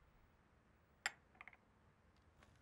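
A cup clinks as it is set down on a saucer.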